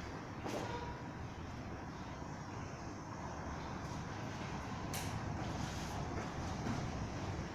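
Bodies thump and shuffle on a padded mat.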